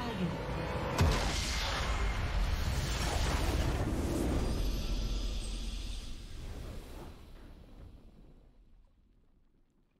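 A triumphant game fanfare swells and fades away.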